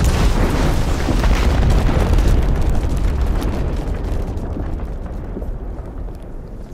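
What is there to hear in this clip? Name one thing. A deep explosion rumbles loudly and slowly fades.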